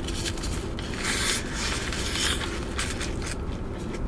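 Paper wrapping rustles close by.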